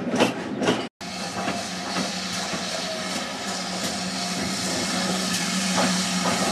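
A steam locomotive approaches with a steady hiss and hum that slowly grows louder.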